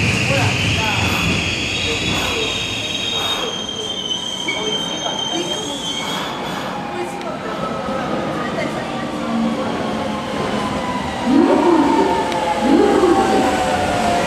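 A train rolls in along the platform.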